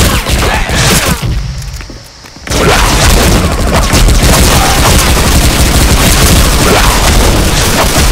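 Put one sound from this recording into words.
Heavy claws slash and thud in quick, repeated blows.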